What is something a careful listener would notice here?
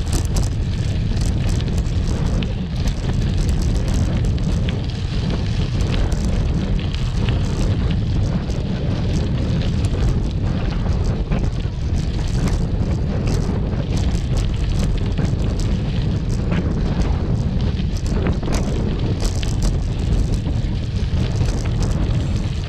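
Bicycle tyres crunch and rattle over gravel.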